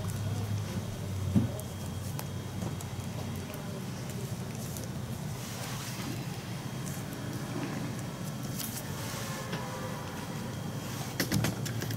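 Playing cards shuffle and riffle in a person's hands.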